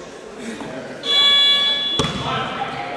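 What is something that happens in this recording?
A referee's whistle blows sharply in an echoing hall.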